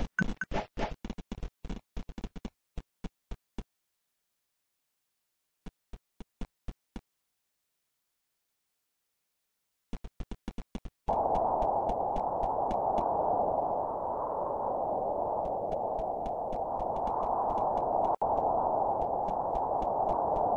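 Footsteps tap quickly on a hard path.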